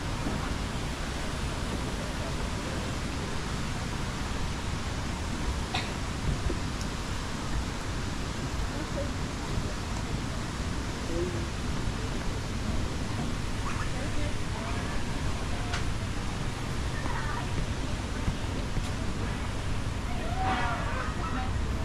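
Footsteps thud steadily on a wooden walkway.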